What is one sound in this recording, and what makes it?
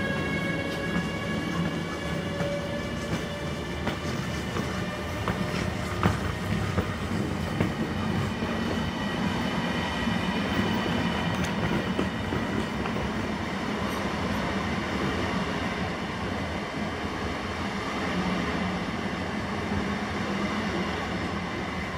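A train's motors whine with high, steady tones.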